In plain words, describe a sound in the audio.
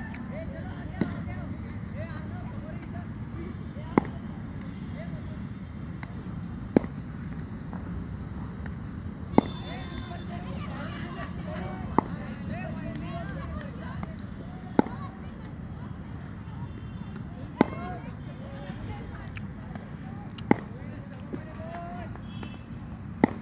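A cricket bat strikes a ball with a sharp crack, again and again.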